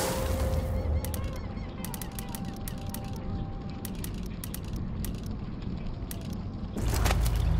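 Soft clicks tick as menu items are selected one after another.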